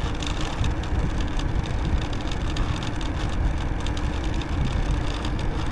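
Wind rumbles and buffets outdoors.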